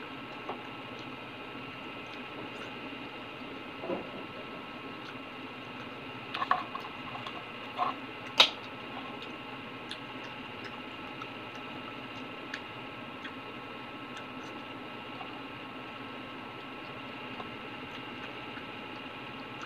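Liquid sloshes and drips in a small glass bowl.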